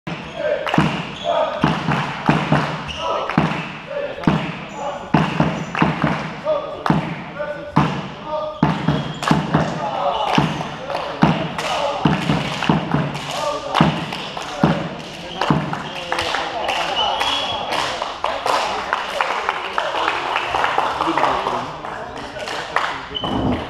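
Shoes squeak on the hall floor.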